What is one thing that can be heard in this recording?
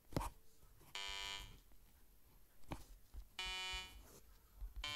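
Electronic synthesizer notes play in short bursts.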